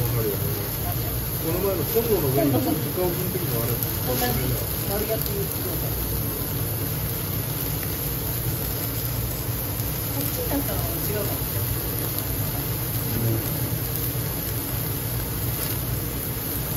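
Burgers sizzle on a hot grill.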